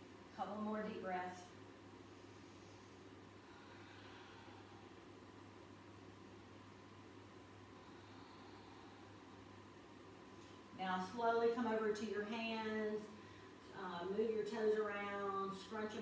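A woman speaks calmly and clearly, close by, giving slow instructions.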